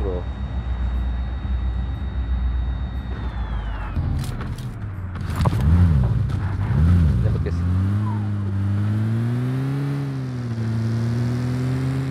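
A car engine drones as it drives along.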